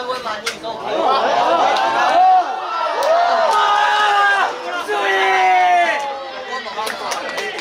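Young players shout and cheer outdoors.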